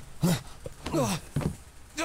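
Bed springs creak as a person leaps off a bed.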